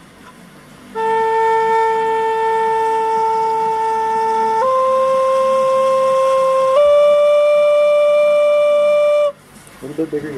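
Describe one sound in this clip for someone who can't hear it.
A steady electronic tone sounds, stepping up in pitch twice before cutting off.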